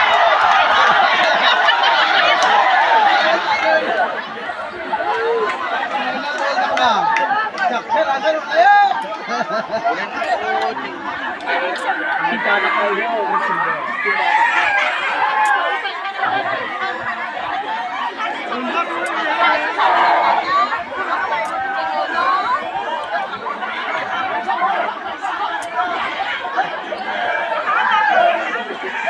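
A large outdoor crowd of men, women and children chatters and cheers loudly.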